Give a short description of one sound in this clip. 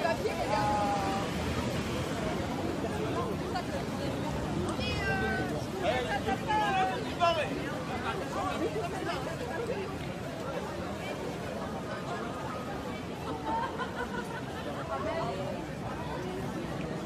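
Voices of nearby women and men talk and call out with animation.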